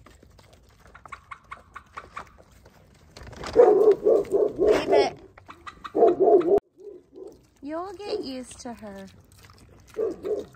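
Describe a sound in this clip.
Pigs munch and crunch on feed.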